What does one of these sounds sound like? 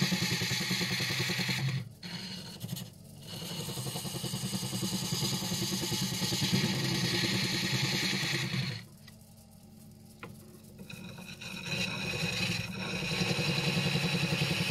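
A gouge scrapes and hisses against spinning wood.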